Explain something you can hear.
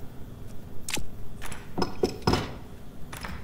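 Short clicks and knocks sound as building pieces snap into place.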